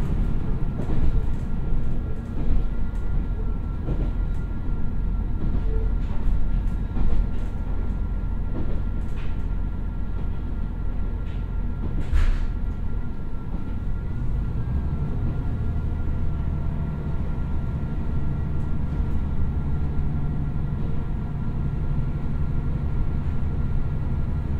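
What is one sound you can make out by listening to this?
A diesel train engine rumbles steadily.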